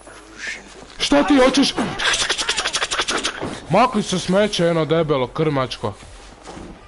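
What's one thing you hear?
A man speaks with agitation, close by.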